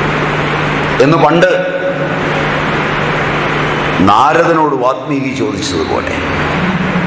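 A middle-aged man speaks briefly and cheerfully, close by.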